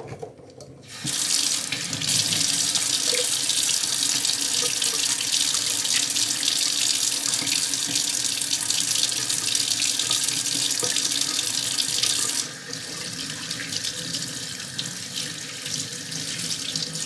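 Tap water runs and splashes into a metal sink.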